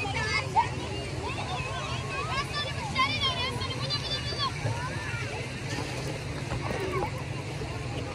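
Children shout and call out as they play.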